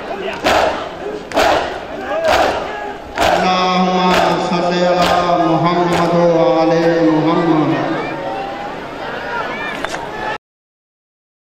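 A large crowd beats their chests in a steady, heavy rhythm outdoors.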